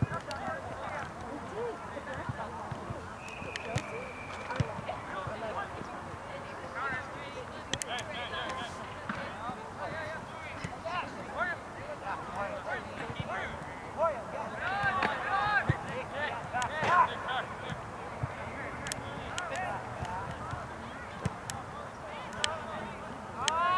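Players shout to one another across an open field.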